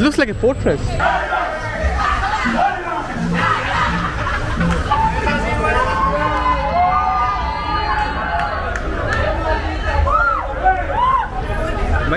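A crowd of people chatters and calls out outdoors in the street.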